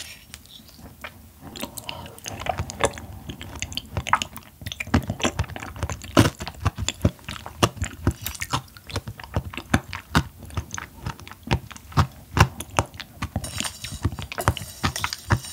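A fork clinks against a glass bowl.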